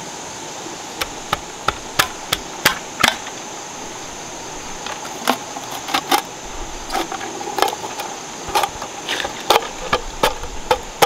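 A knife chops sharply into bamboo in quick, uneven strokes.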